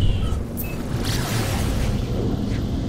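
A rushing whoosh surges as a spaceship jumps to warp.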